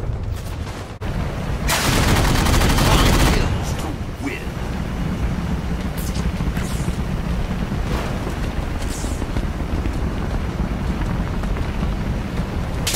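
An aircraft engine hums and whines steadily.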